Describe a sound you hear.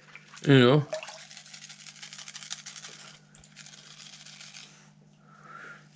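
Water sloshes gently in a shallow pan.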